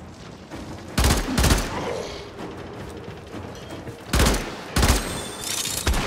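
Loud blasts of gunfire burst out in short bursts.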